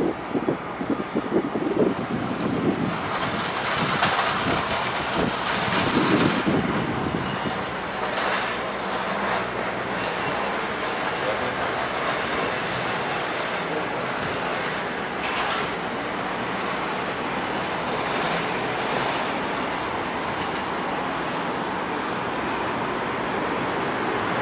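Road traffic rumbles along a city street.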